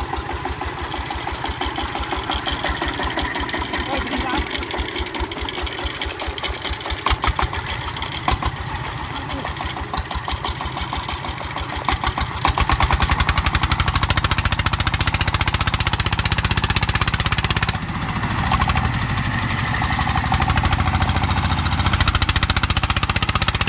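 A diesel engine chugs loudly and steadily close by, growing louder partway through.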